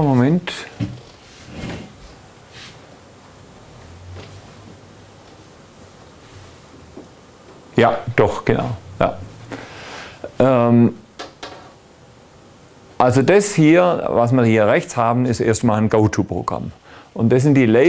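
A man lectures calmly in a room with some echo.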